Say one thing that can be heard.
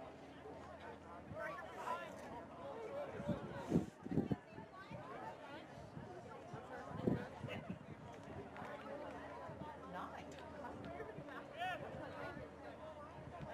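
Players shout and call out across an open field outdoors.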